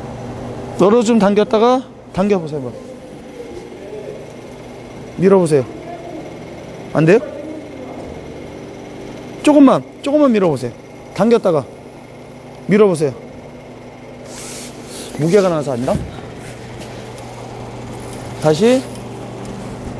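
A man speaks loudly in short bursts in an echoing hall.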